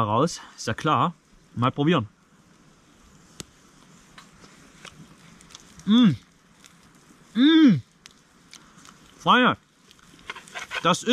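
A small campfire crackles softly.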